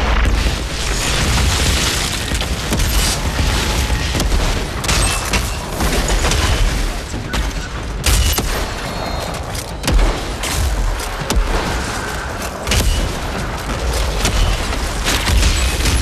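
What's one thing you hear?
Explosions boom with deep rumbles.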